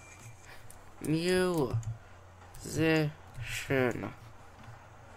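Playful bouncing tones ring out in short bursts.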